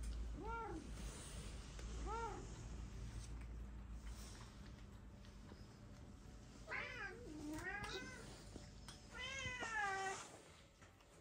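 Cats meow close by, in short rising and falling cries.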